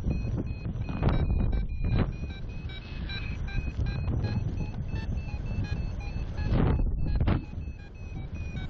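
Wind rushes and buffets loudly, outdoors high in the air.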